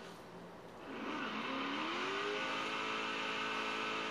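Car tyres screech in a drift.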